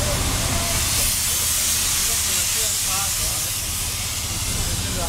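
A steam locomotive hisses loudly close by.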